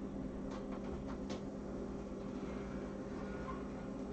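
An oven door creaks open.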